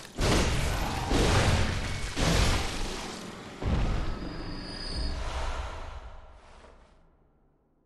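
Heavy blows land with loud crashing thuds, one after another.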